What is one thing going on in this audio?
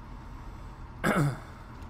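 A man briefly exclaims close to a microphone.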